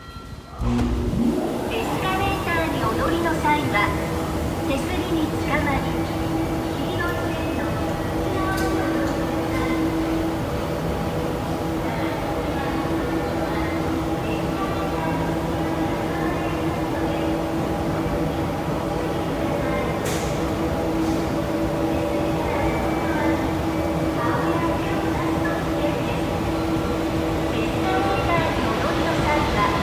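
An escalator hums and rattles steadily as it runs.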